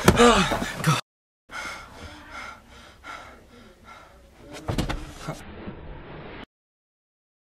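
A young man groans and snores loudly nearby.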